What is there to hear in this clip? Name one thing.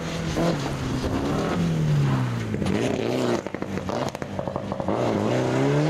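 Gravel crunches and sprays under a rally car's tyres.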